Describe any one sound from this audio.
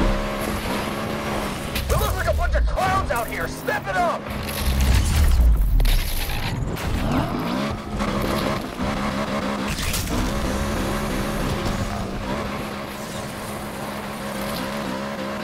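A car engine roars and revs steadily.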